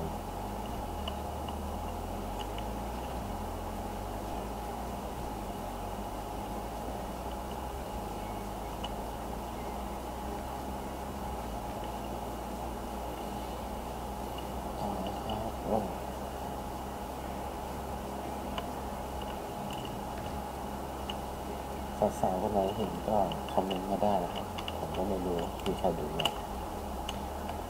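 A motorcycle engine hums steadily as it rides.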